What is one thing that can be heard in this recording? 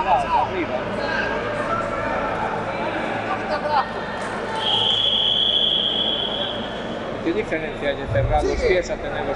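Many people in a crowd chatter and shout in a large echoing hall.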